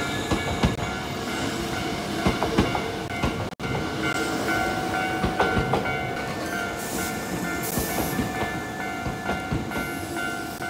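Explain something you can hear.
A train rumbles past close by, its wheels clattering over the rails.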